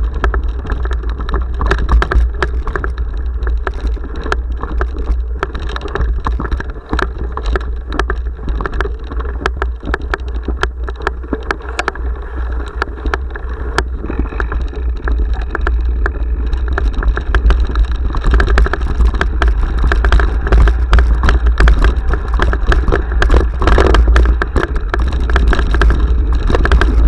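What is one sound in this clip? Bicycle tyres crunch over a rough dirt and gravel track.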